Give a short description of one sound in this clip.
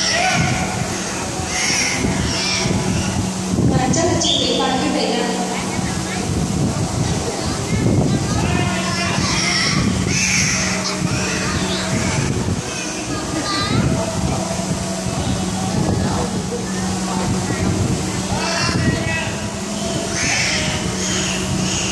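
A dolphin splashes in a pool.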